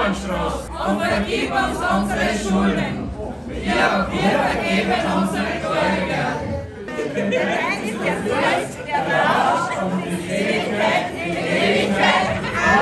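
A group of women sing together in an echoing room.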